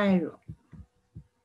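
A young woman speaks briefly and calmly into a close microphone.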